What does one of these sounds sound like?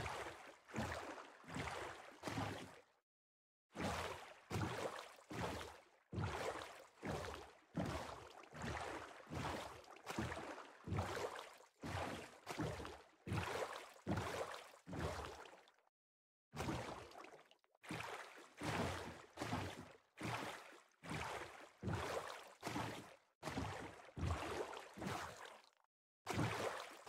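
Oars splash through water in a steady rowing rhythm.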